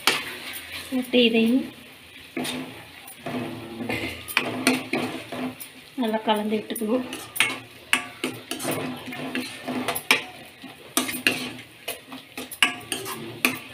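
A metal spoon scrapes and clinks against a pan while stirring.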